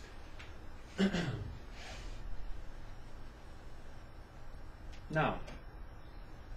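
A man speaks nearby with a slight echo, pausing between short phrases.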